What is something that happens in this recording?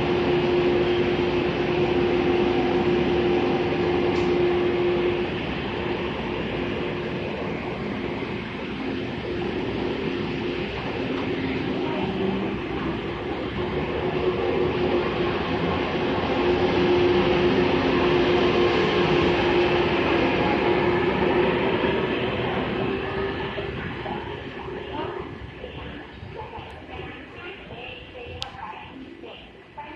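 A train rumbles past on the tracks, wheels clattering steadily.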